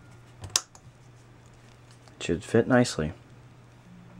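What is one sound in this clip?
A plastic buckle clicks shut.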